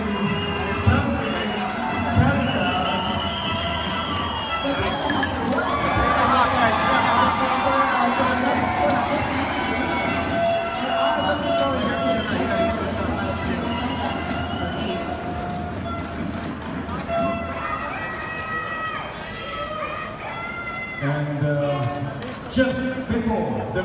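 Many adults chatter all around in a busy, echoing hall.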